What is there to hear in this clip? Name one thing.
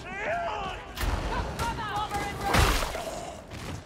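A gun fires with heavy booming shots.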